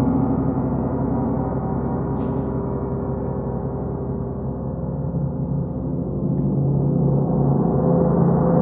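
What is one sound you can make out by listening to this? A large gong hums and rings with a deep, swelling shimmer as a mallet rubs and strikes it.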